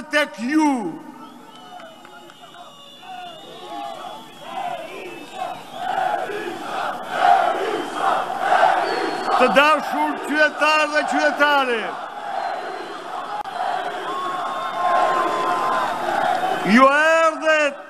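A large crowd cheers and chants.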